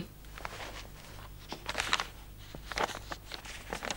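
A woman rummages through items on a shelf with faint rustles.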